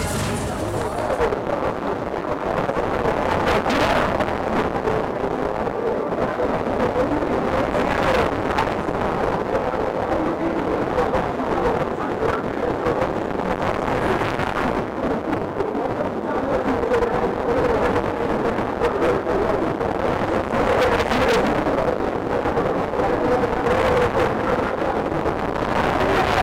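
A fairground ride whirls and rattles.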